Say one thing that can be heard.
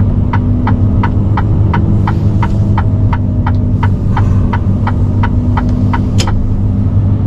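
A turn signal ticks rapidly and evenly, then stops.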